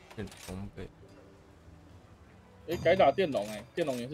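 A short interface chime sounds.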